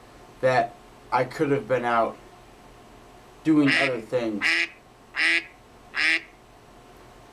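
A young man speaks loudly and with animation close to a microphone, in short bursts.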